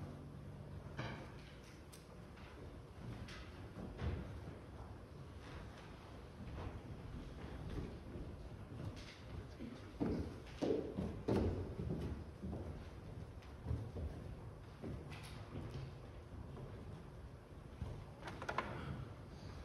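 Footsteps shuffle and thump across a wooden stage.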